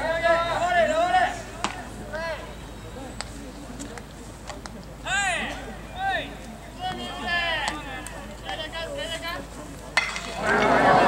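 A man nearby calls out loudly.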